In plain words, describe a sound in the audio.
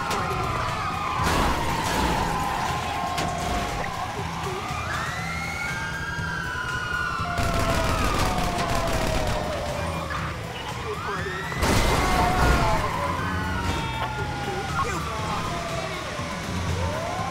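A siren wails and swoops up and down.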